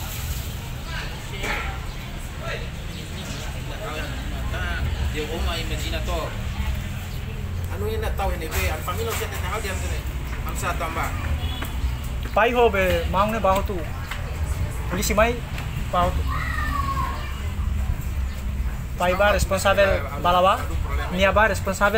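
Several young men talk and call out nearby, outdoors.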